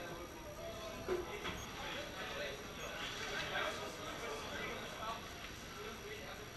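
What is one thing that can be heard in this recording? A crowd of people chatters softly in a large room.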